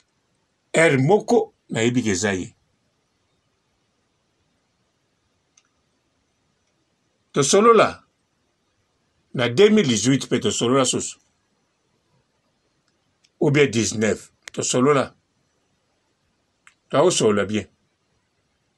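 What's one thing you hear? A man speaks calmly and close to a phone microphone, in short bursts with pauses.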